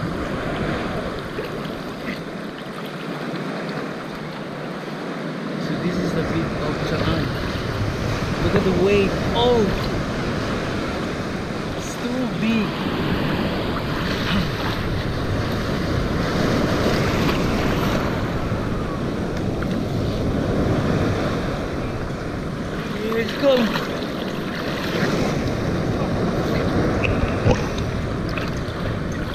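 Water splashes and sloshes close by, outdoors in the sea.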